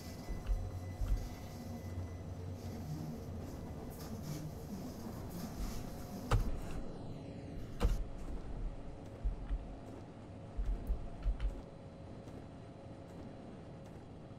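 A train rumbles along the tracks with low, uneven thumps from the wheels.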